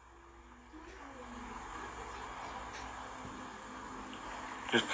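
A phone plays soft game music.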